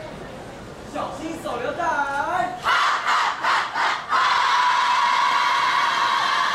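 A group of teenage girls and boys shout and chant loudly together.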